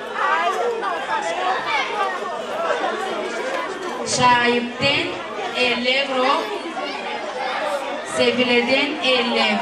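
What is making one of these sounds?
A crowd of women chatters in the background.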